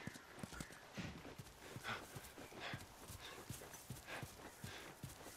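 Gear rattles softly with each step.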